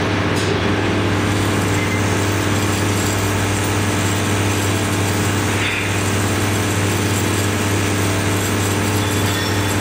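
Small metal parts rattle and jingle as they shake along a metal track.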